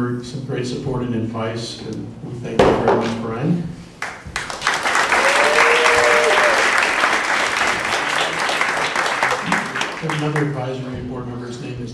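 A man speaks through a microphone to an audience in a large hall.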